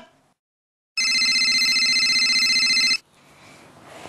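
A phone rings with a steady electronic trill.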